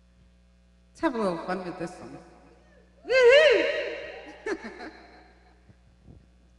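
A young woman sings loudly into a microphone in short bursts.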